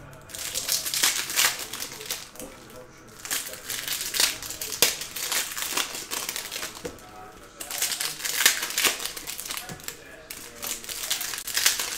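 Trading cards shuffle and rustle in a man's hands.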